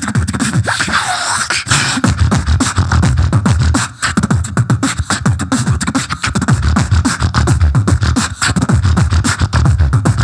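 A young man beatboxes fast, punchy rhythms into a microphone over loudspeakers.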